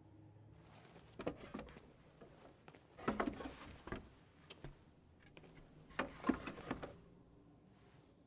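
A large board scrapes and knocks as it is moved.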